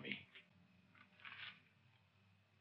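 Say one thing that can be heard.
Playing cards are dealt onto a table.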